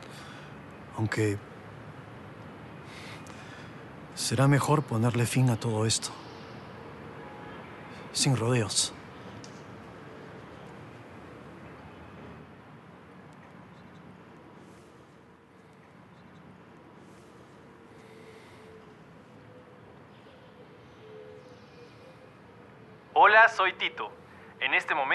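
A man speaks in short bursts, close by.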